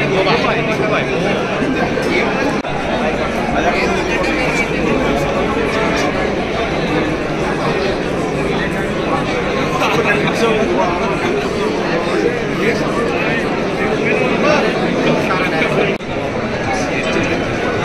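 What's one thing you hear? A crowd of men and women chatter loudly all around, close by.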